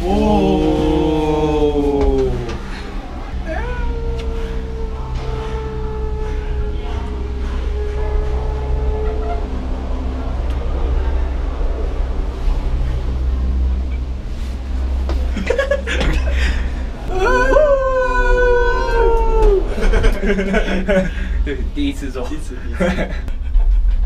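A young man whines and cries out nervously, close by.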